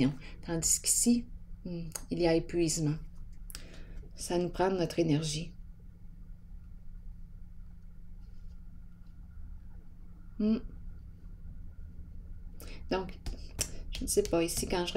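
Playing cards slide and tap softly on a tabletop.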